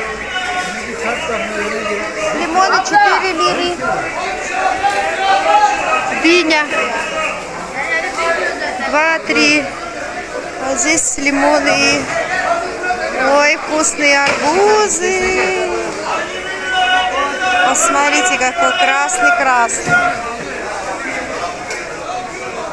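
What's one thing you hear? A crowd of men and women chatters all around in a busy outdoor market.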